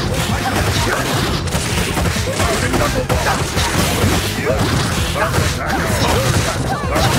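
Punches and kicks land with rapid smacking hits.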